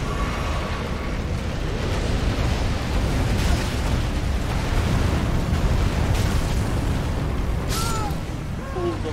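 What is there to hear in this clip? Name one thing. A deep fiery roar rumbles steadily and swells.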